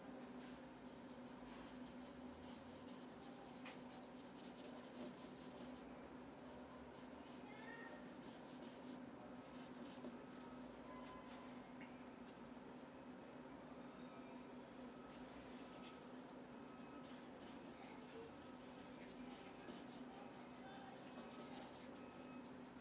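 A dry brush scratches and swishes across paper.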